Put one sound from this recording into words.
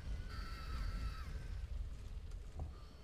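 A spell bursts with a crackling, splashing whoosh.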